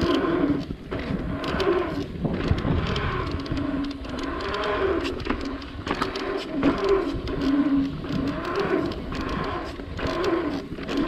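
Wind buffets the microphone in loud gusts.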